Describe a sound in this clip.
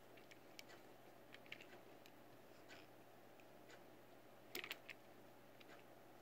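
Small plastic wheels roll and rattle across a hard surface.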